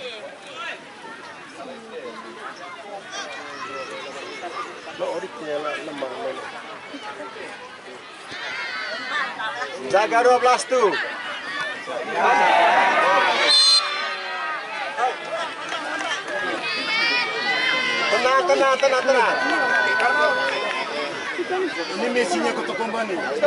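A large outdoor crowd cheers and shouts excitedly.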